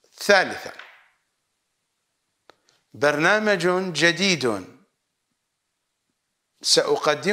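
A middle-aged man speaks calmly and firmly into a close microphone, in short phrases with pauses.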